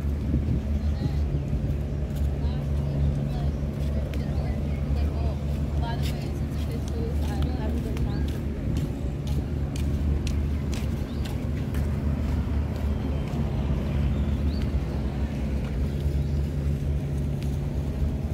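Boat engines hum steadily in the distance.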